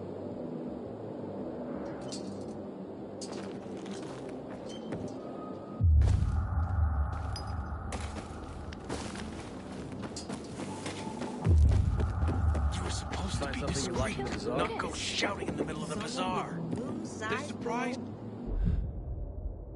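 Footsteps thud on wooden boards and dirt.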